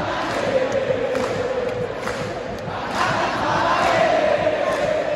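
A large stadium crowd chants and sings loudly in unison, echoing under the roof.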